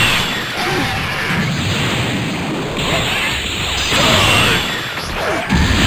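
An energy beam blasts with a loud roar.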